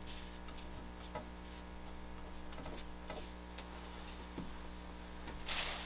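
A man rubs a flat board across a rough surface.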